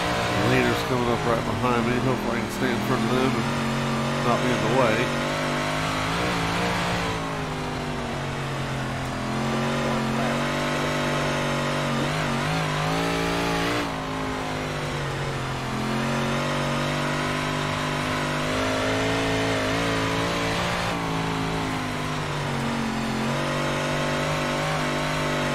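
A racing car engine drones steadily at high revs, rising and falling with the throttle.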